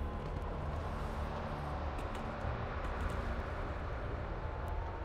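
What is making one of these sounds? A large winged creature's heavy footsteps thud on stone.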